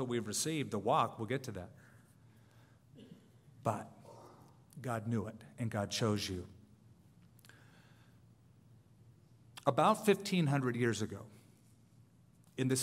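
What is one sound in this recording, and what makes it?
A man speaks calmly and closely into a microphone, with short pauses.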